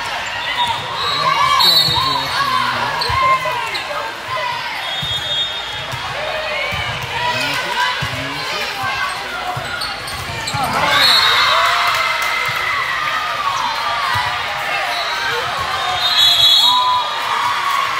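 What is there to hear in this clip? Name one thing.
A referee's whistle blows sharply several times.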